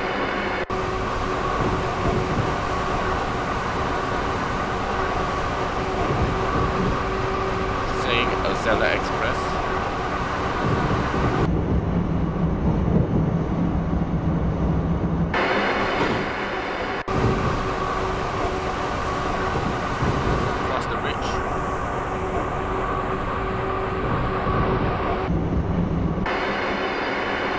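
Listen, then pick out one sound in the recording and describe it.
An electric train hums and rumbles steadily along the tracks.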